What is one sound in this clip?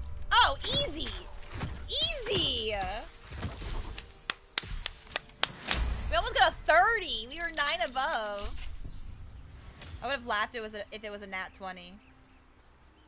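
A young woman talks excitedly into a close microphone.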